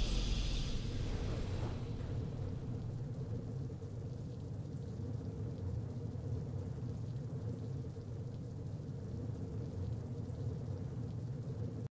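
Triumphant game music plays steadily with a deep low swell.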